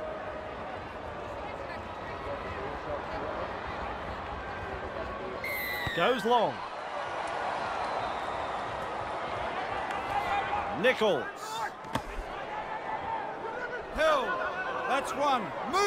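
A large crowd cheers and murmurs steadily.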